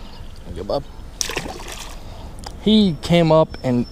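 A fish splashes into water.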